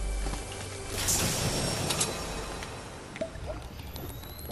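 A treasure chest gives off a shimmering, humming chime.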